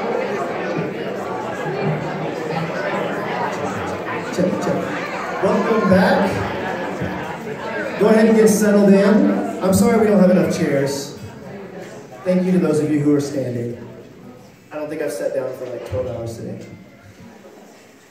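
A young man sings into a microphone over amplified speakers.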